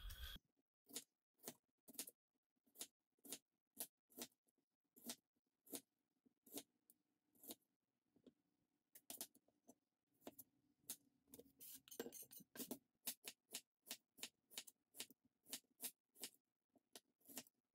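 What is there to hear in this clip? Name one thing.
A knife slices through an onion and taps on a cutting board.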